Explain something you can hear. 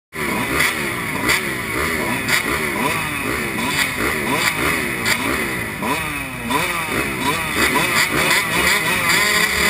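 Motorcycle engines rev up and down repeatedly, close by.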